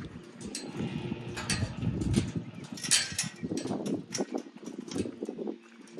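A metal gate latch rattles and clanks.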